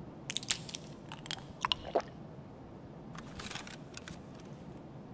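Game inventory items click and rustle as they are moved.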